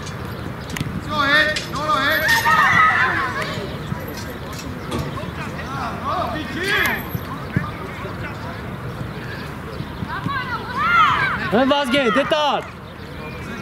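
Children shout and call out across an open field outdoors.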